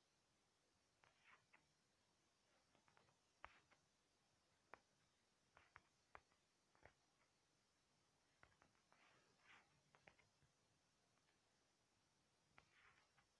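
Wooden blocks are placed with short, soft knocks.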